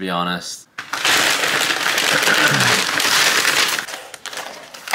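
A paper bag rustles and crinkles loudly.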